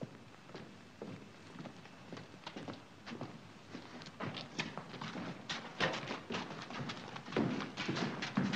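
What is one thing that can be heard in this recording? Many footsteps shuffle and patter, growing louder.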